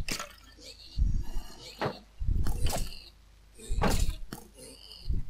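A sword strikes a skeleton again and again.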